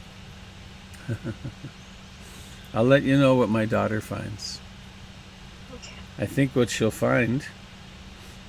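An elderly man speaks calmly and closely into a headset microphone, in short bursts with pauses.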